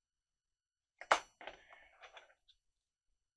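Paper rustles and scrapes as small pieces are handled.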